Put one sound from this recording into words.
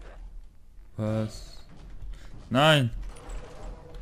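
A young man speaks through a headset microphone.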